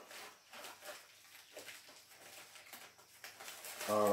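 Paper rustles and tears as a man opens an envelope.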